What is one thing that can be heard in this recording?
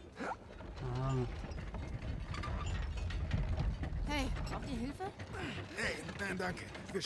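A heavy wooden cart rolls and rumbles over cobblestones.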